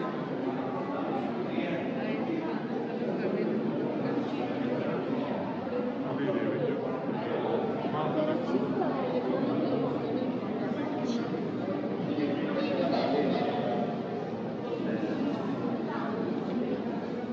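Footsteps shuffle on a hard floor.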